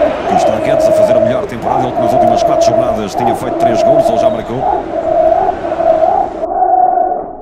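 A stadium crowd murmurs and cheers through a small phone speaker.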